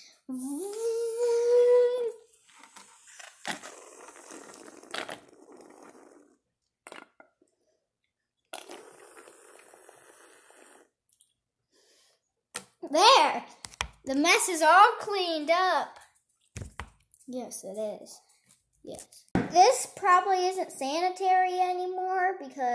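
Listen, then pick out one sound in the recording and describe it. A young girl sings loudly close by.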